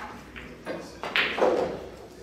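A pool cue strikes a ball with a sharp tap.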